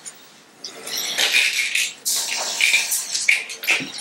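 Bottles clink and rattle as a man handles them.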